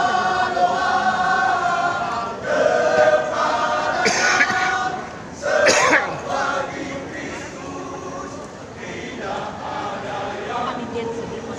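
Loud music with singing plays over loudspeakers in a large echoing hall.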